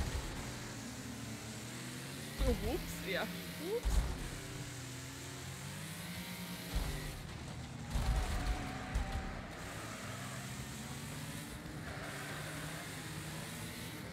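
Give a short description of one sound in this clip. A race car engine roars steadily.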